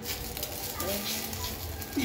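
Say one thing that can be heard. A fork scrapes across a pan.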